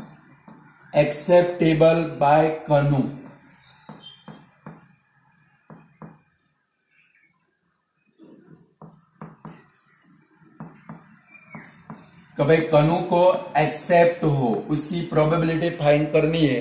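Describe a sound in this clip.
A man speaks calmly and clearly, as if teaching.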